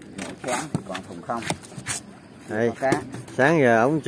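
A foam lid scrapes and squeaks as it is lifted off a box.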